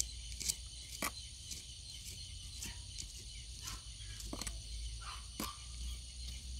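A small hand trowel scrapes and digs into soil in a pot.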